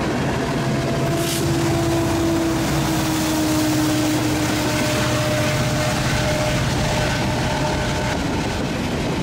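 Diesel locomotives drone loudly as they pass.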